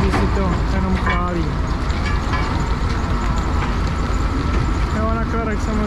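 Crushed gravel pours off a conveyor onto a pile.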